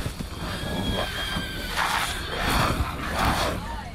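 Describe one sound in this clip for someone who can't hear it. A horse whinnies and snorts.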